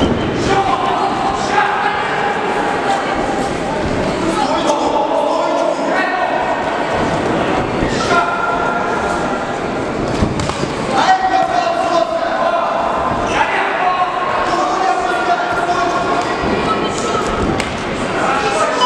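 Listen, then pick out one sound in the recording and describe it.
Gloved punches and kicks land with dull thuds.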